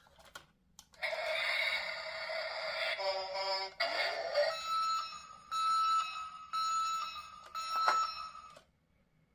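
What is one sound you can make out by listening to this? A toy truck's sound box plays loud electronic sound effects and tunes.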